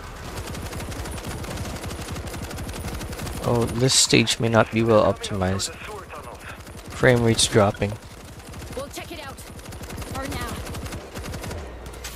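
A heavy gun fires repeated booming shots.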